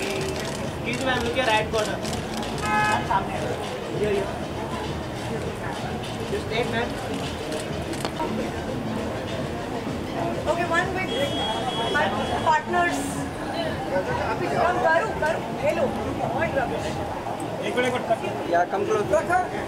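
A crowd chatters in a noisy, echoing room.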